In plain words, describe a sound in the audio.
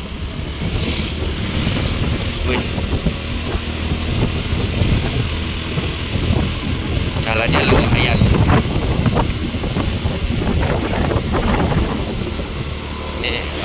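Motorbike engines hum as scooters pass close by.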